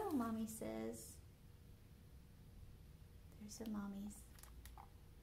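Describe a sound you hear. A woman reads aloud expressively, close to a microphone.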